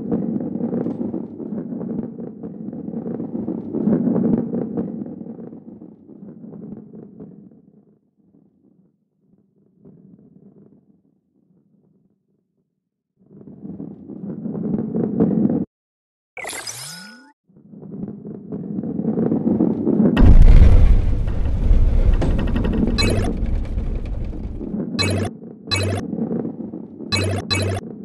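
A heavy ball rolls and rumbles along a track.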